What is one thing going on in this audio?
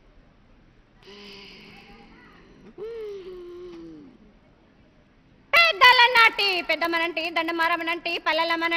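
A woman speaks loudly into a microphone.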